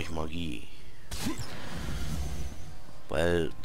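Magical energy bursts with a loud crackling whoosh.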